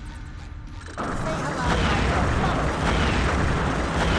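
Bubbles burst and fizz loudly.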